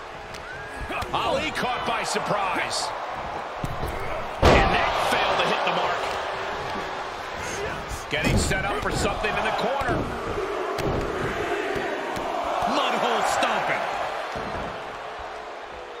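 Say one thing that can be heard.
A large crowd cheers and roars loudly.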